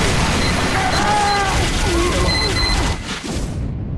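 A heavy rotary gun fires in a rapid, rattling stream.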